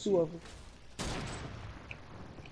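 A wooden wall is built with a sharp knock.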